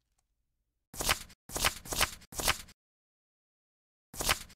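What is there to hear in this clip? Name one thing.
Short soft clicks sound in quick succession as menu items are selected.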